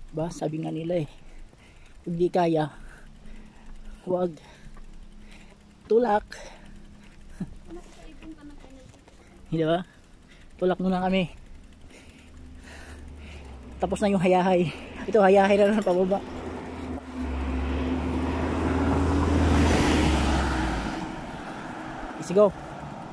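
A bicycle's wheels tick as it is pushed along.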